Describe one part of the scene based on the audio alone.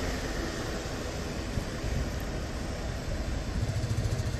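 A truck's engine rumbles nearby.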